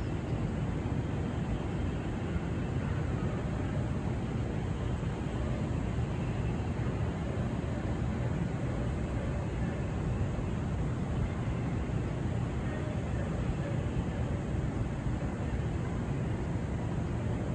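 Wind blows steadily and rumbles outdoors.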